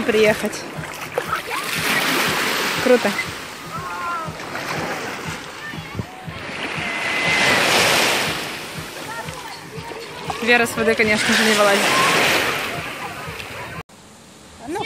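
Waves wash and splash on the shore.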